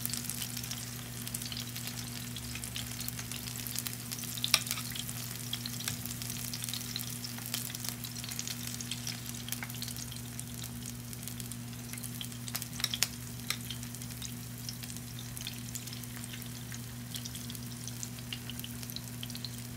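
A metal spoon scrapes and taps against a pan.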